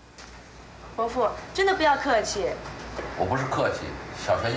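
A woman speaks with distress.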